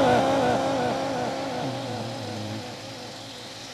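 A man chants in a drawn-out, wavering voice through a loudspeaker, fading away.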